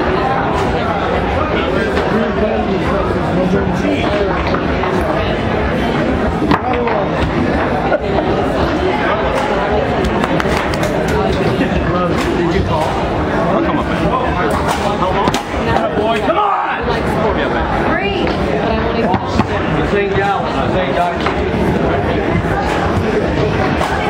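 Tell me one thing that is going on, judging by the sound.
A crowd of men and women chatters nearby.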